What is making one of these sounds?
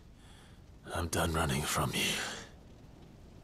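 A young man speaks quietly and calmly, close by.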